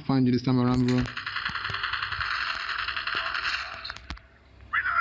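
Gunshots ring out from a rifle.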